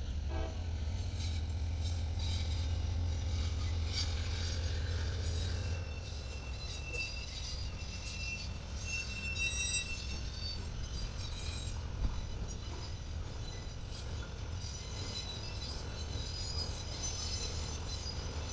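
Freight cars clatter and squeal along the rails.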